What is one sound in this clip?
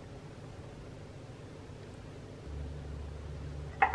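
Fruit pieces drop softly into a bowl.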